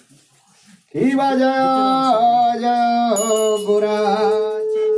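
Men and women sing together loudly.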